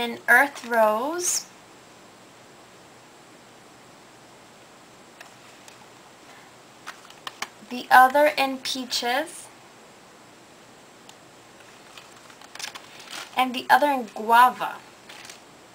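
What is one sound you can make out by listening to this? Cardboard packaging rustles in a young woman's hands.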